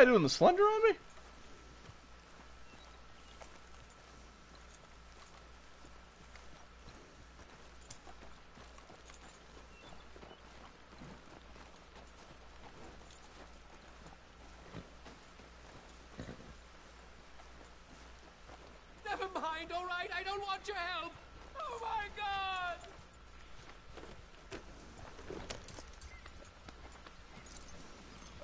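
A horse's hooves clop slowly on a dirt path.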